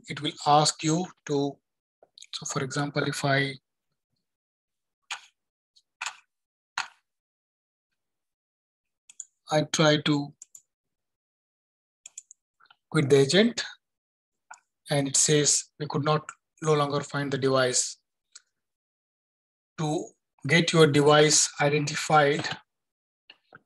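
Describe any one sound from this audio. A man speaks calmly and explains, close to a microphone, with pauses.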